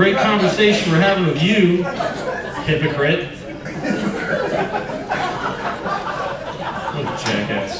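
A middle-aged man speaks with animation into a microphone over loudspeakers, in a room with some echo.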